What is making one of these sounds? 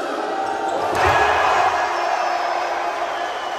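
A crowd roars loudly in celebration.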